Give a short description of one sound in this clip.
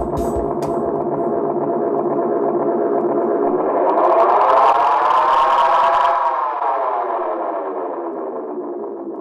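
A tape echo unit drones with a repeating tone that swoops up in pitch and slowly sinks again.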